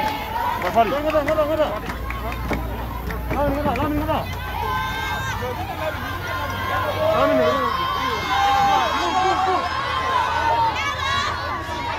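A large crowd of men and women shouts and cheers loudly nearby.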